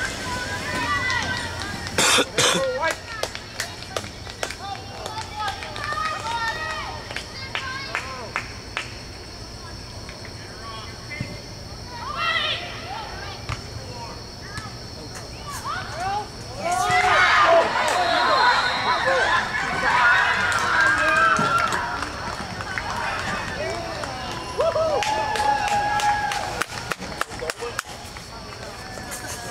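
Players and spectators shout and call out across an open field outdoors.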